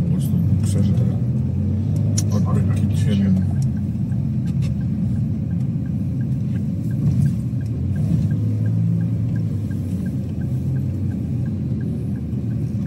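A car engine rumbles steadily as the car drives along.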